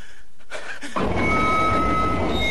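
A train's wheels rumble and screech along rails.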